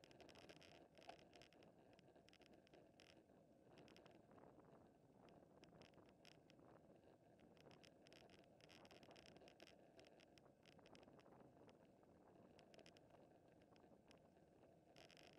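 Bicycle chains and freewheels tick with rapid clicks.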